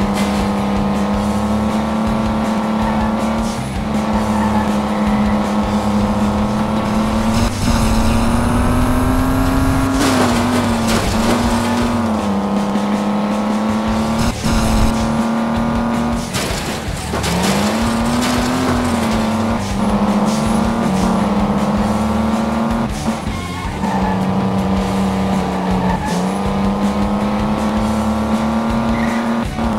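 A race car engine drones loudly, its pitch rising and dropping as it speeds up and slows.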